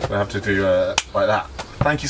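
Two men clap hands together in a high five.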